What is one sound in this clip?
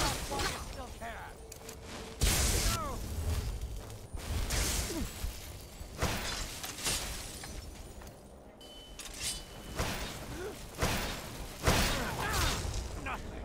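A man shouts gruffly in combat.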